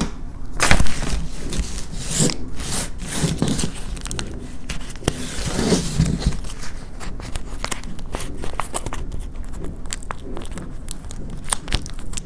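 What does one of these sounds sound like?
A plastic bag crackles as fingers press and peel it.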